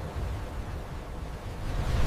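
Waves crash heavily against buildings.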